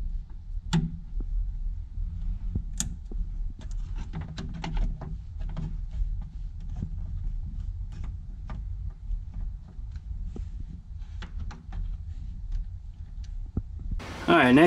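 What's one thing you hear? Plastic hose fittings click and rattle as they are handled.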